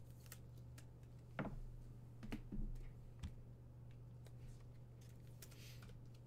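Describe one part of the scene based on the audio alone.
Trading cards and plastic packaging rustle and click in handling.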